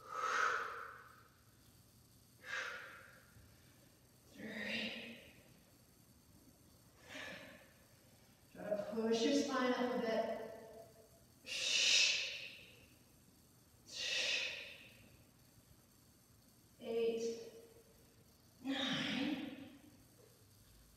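A woman breathes out hard with each push-up.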